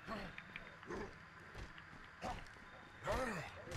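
Footsteps run quickly over pavement.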